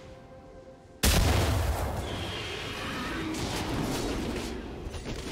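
A fiery blast bursts with a loud roaring whoosh and crackles on.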